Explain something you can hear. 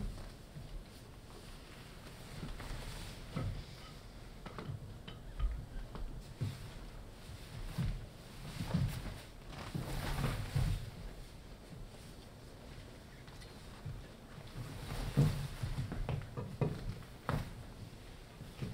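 Dancers' feet thud and shuffle on a stage floor.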